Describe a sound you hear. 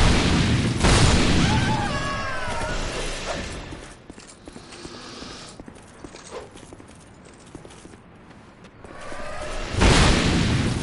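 Creatures shriek and howl.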